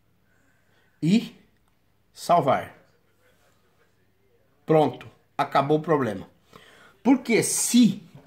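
A man speaks calmly and close by, in short phrases.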